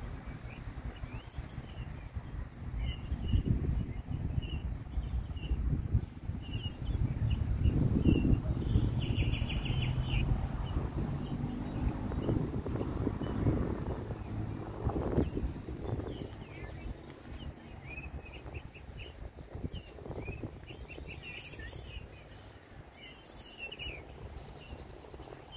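Wind blows in gusts through leafy trees outdoors.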